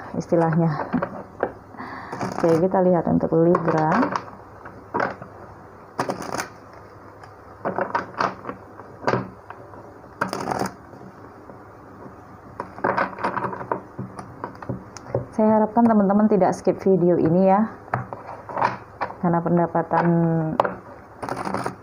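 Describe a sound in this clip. Cards are shuffled and tapped on a table.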